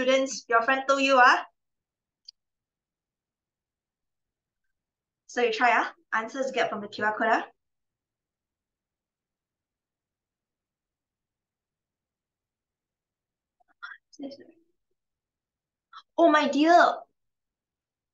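A young woman speaks calmly into a microphone, with pauses between phrases, as if on an online call.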